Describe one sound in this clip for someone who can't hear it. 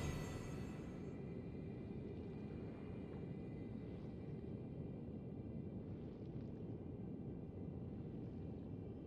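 Footsteps crunch softly on grass and stone.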